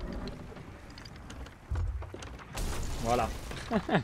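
A cannon fires with a loud boom.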